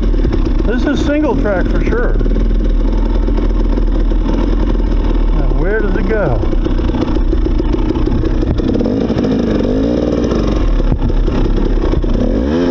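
Tyres roll and bump over a rough dirt trail.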